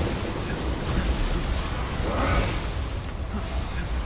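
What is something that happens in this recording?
An energy blast crackles and roars.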